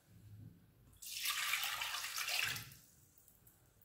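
A thick liquid pours into a metal pan.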